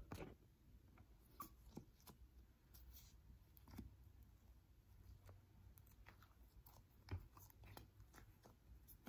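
Fingernails tap and click on a plastic container close up.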